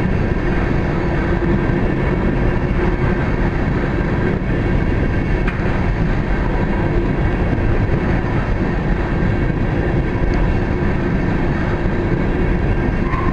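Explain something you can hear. A freight train rumbles past steadily nearby, its wheels clattering on the rails.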